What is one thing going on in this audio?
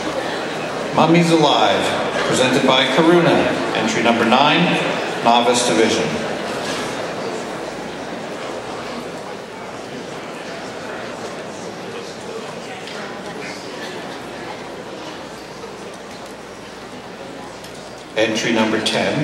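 A man speaks with animation through a microphone, echoing in a large hall.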